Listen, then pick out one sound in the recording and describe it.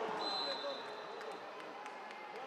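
A referee's whistle blows a long steady note.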